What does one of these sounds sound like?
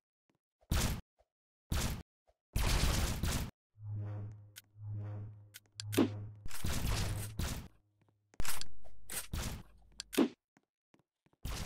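Short electronic game sound effects play in bursts.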